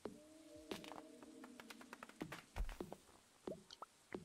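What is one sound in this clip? Quick light footsteps patter on grass.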